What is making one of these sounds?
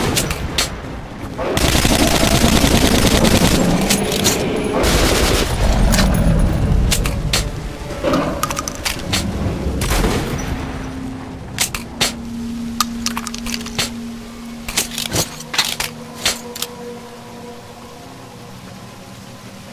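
Flames roar and crackle close by.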